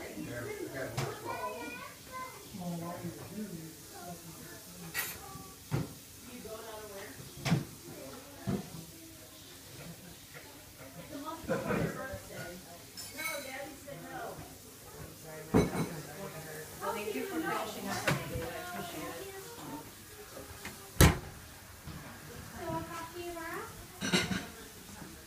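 A metal crutch knocks against the floor and walls.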